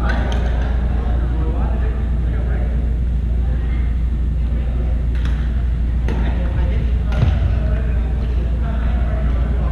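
Men call out to each other across a large echoing gym.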